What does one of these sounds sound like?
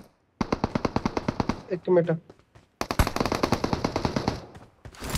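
Rapid automatic gunfire rattles in quick bursts.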